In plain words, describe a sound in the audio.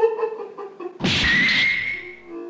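A hand slaps a face sharply.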